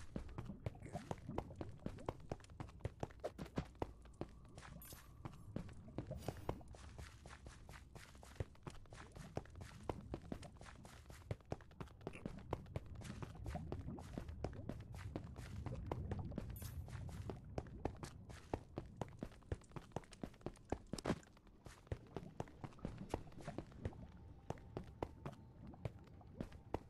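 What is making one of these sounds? Footsteps of a game character tap quickly on stone.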